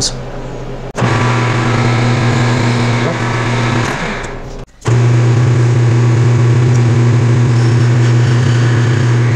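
A lathe motor hums steadily as the chuck spins.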